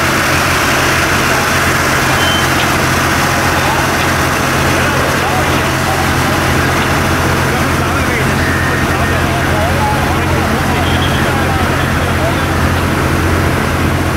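A fire roars and crackles steadily close by.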